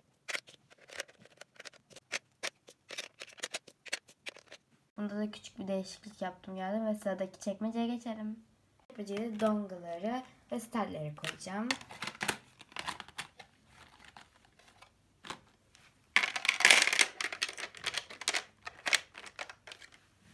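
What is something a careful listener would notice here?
Plastic markers clack against one another and against a plastic case.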